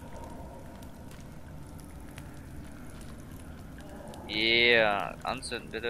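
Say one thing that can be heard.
A torch fire crackles and roars softly.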